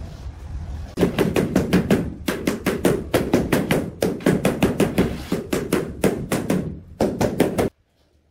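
A rubber mallet taps rapidly on a ceramic floor tile.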